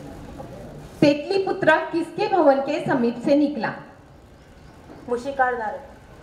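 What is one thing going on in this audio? A woman speaks loudly and clearly over a loudspeaker.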